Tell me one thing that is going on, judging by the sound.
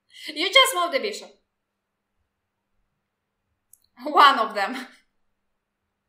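A young woman laughs over an online call.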